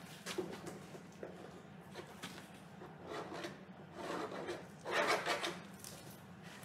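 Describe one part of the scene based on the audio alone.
A long straightedge scrapes across a canvas with a rough, rasping sound.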